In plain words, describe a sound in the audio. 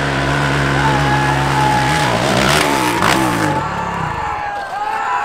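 A dirt bike engine revs loudly up close, then cuts out.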